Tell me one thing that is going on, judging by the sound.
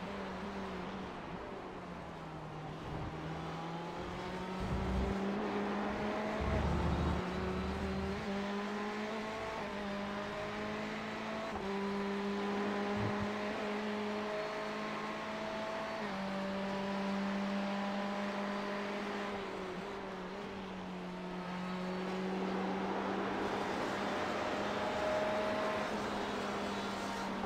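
A racing car engine roars, revving up and down through gear changes.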